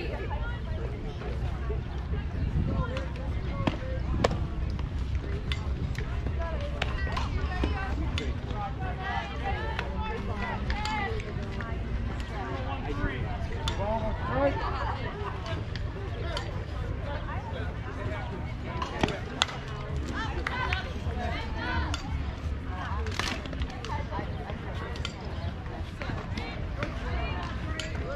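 Young players and adults chatter and call out nearby.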